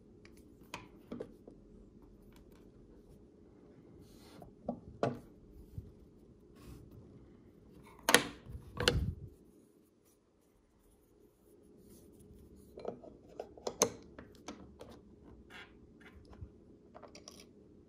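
Hard knife handle parts click and tap as hands handle them.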